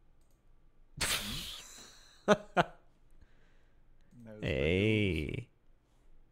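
A man laughs softly.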